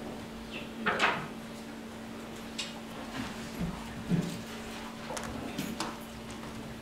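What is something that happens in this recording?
Objects knock and thump against a wooden lectern.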